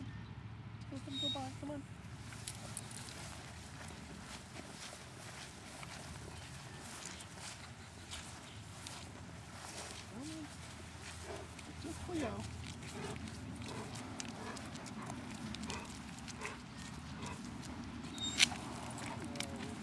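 Footsteps scuff along on grass and then pavement.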